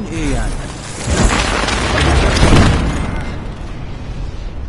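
A loud explosion booms and roars.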